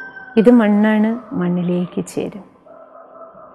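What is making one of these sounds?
A woman speaks calmly and close to a microphone.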